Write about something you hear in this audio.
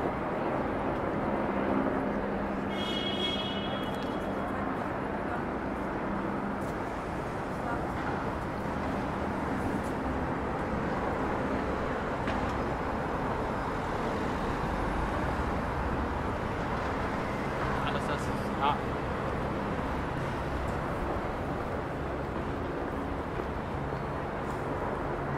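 Traffic and crowd noise hum steadily outdoors.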